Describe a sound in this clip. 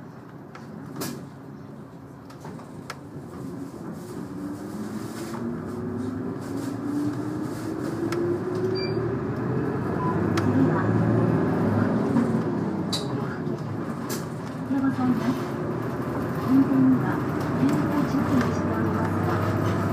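A train rumbles and clatters along the tracks, growing louder.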